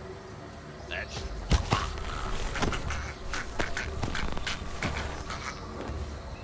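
Two men scuffle and thud against a wall.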